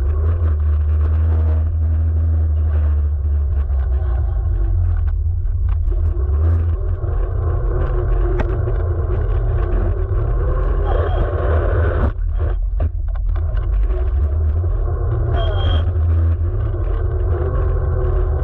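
An electric scooter's tyres roll and hum over rough asphalt.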